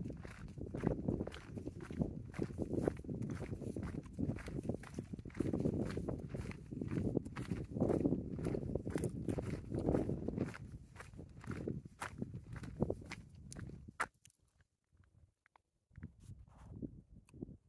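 Footsteps walk on a concrete path outdoors.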